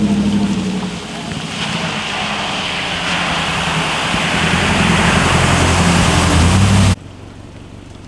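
A pickup truck engine rumbles as it drives through deep floodwater.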